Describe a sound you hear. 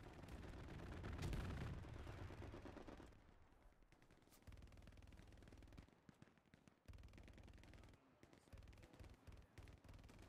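Footsteps run quickly over grass and stony ground.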